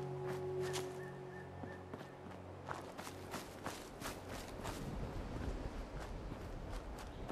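Footsteps crunch through dry leaves and brush at a steady walking pace.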